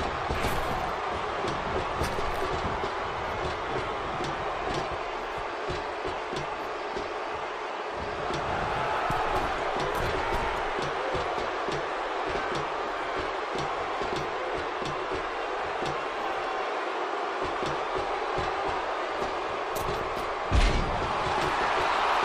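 Bodies thud against a wrestling ring's mat and ropes.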